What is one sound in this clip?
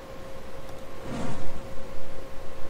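Fireballs burst with a crackling whoosh.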